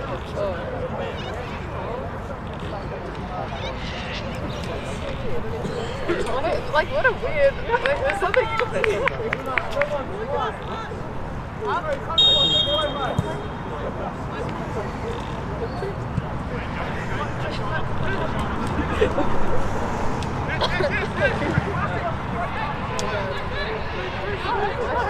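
Footballers shout to each other across an open field.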